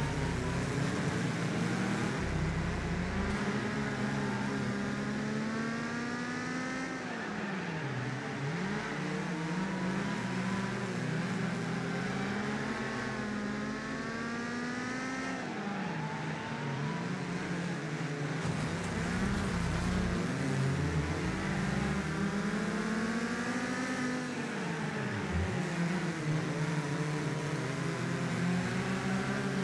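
Tyres skid on asphalt through the corners.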